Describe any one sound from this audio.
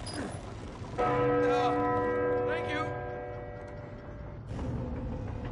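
A large bell rings loudly and its tone slowly fades.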